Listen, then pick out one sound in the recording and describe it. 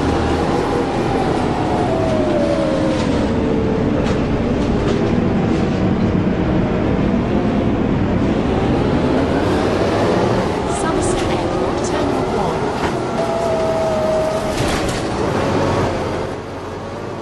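A bus engine hums and its pitch rises and falls as it drives.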